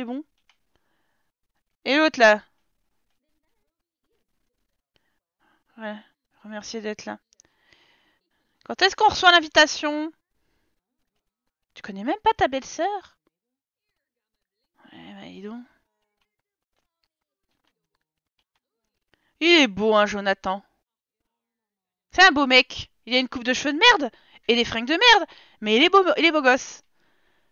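A young woman talks with animation into a close microphone, in short bursts with pauses.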